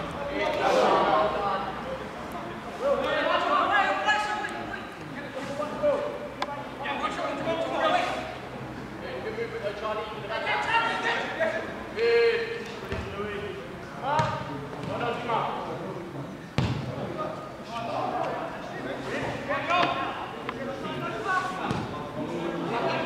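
Young men shout and call to each other outdoors on a pitch.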